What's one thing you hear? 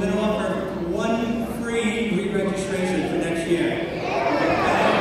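A children's choir sings in a large hall.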